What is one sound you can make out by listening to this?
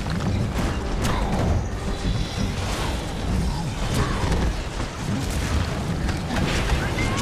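Magic blasts crackle and burst in quick bursts.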